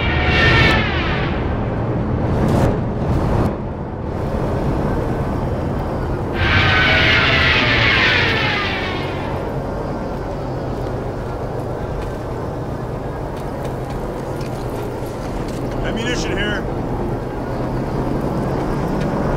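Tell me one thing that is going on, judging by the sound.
Aircraft engines drone steadily overhead.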